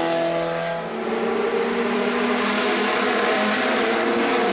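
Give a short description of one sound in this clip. Another car engine revs in the distance as a second car approaches.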